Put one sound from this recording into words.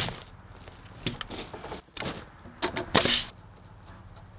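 A nail gun fires with sharp bangs.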